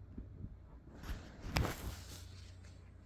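Cassettes are set down on a soft surface with a light knock.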